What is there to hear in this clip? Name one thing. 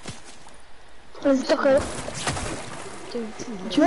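Water splashes as feet wade through it.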